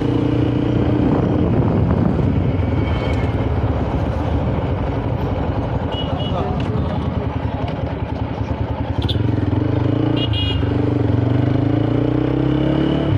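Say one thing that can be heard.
A motorcycle engine hums steadily close by and rises in pitch as it speeds up.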